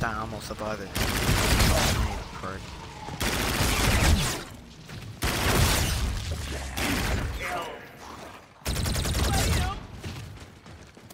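Guns fire in loud bursts.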